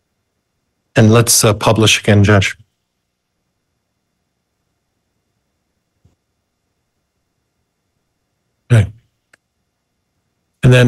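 A man speaks briefly through a microphone in a video call.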